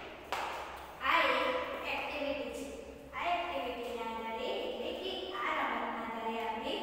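A young woman speaks clearly and calmly, close by.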